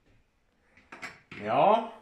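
A young man speaks briefly, close by.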